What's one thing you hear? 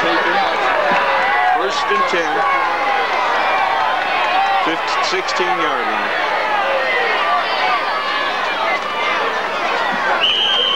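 A large crowd of spectators chatters and calls out outdoors.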